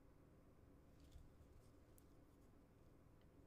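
A small plastic holder clicks and taps softly as it is turned in the hand.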